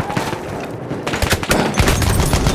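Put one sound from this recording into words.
A submachine gun fires a rapid burst of loud shots.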